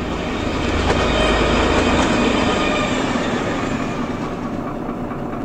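A train rushes past close by, rumbling and rattling loudly.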